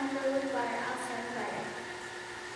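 A child speaks on a stage, heard from among the audience.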